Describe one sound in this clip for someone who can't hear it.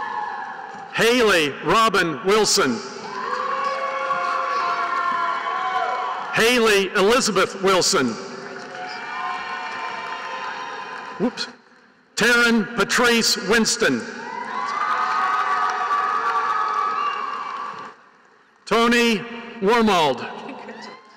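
A crowd cheers and whoops loudly in bursts in a large echoing hall.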